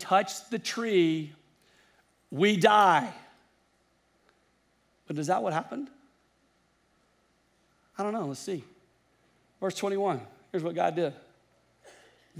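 A middle-aged man speaks with emphasis into a headset microphone, in short phrases with pauses.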